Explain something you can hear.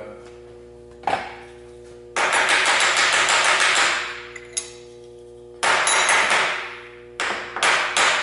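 A soft mallet taps rapidly and repeatedly on metal.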